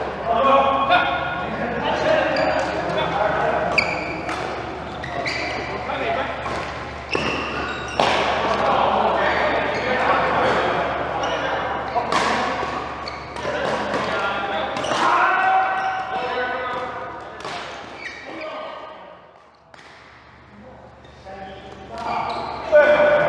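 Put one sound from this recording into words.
Several people talk and call out in the echoing hall.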